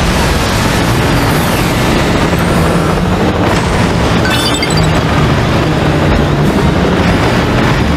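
A small aircraft's engines hum steadily as it flies.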